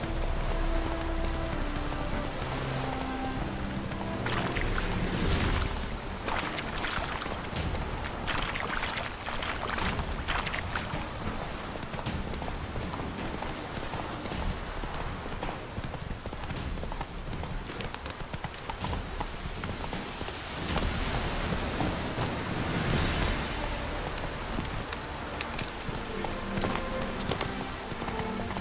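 Horse hooves gallop steadily over sand and dirt.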